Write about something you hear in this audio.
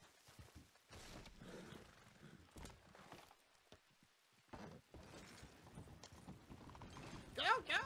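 A horse-drawn wagon rattles along.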